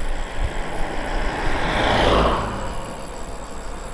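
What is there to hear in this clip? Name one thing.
A car passes by with a rushing swoosh.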